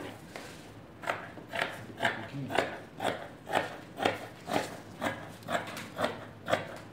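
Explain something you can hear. Scissors snip through fabric in a steady rhythm.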